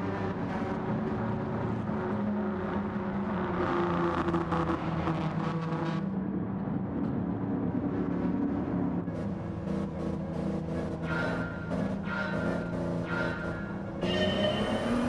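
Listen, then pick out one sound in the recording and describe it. Racing car engines roar past on a track.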